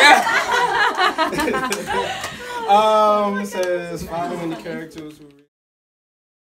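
A crowd of men and women chatter and laugh loudly nearby.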